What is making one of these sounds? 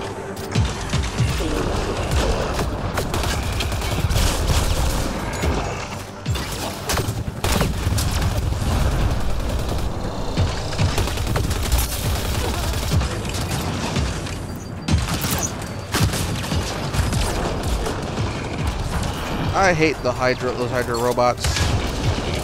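Rapid gunfire crackles and booms in a video game.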